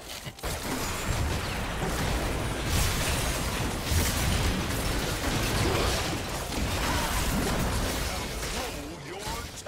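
Spell blasts boom and crackle in a busy fight.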